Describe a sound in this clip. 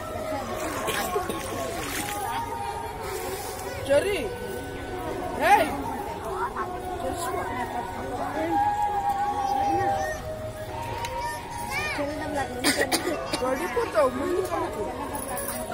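Water splashes softly around a child wading.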